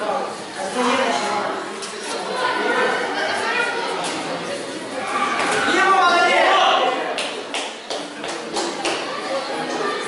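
A crowd of children and adults shouts and cheers in an echoing hall.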